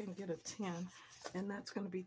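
Paper banknotes rustle as they are handled.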